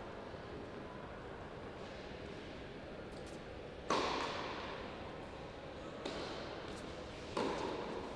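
Footsteps crunch softly on a clay court.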